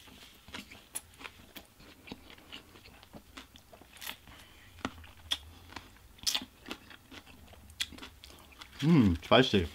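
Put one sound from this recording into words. A man chews food noisily close to the microphone.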